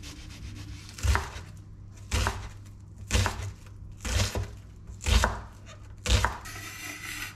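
A chef's knife chops an onion on a wooden cutting board.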